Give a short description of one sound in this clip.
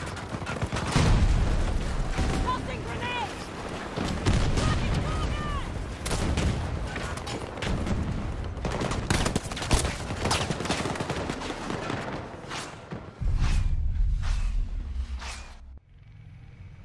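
Explosions boom heavily nearby.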